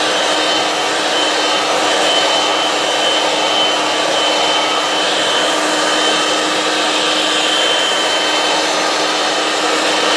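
An electric stand mixer whirs steadily and loudly.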